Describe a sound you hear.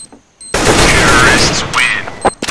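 A gun fires a loud burst at close range.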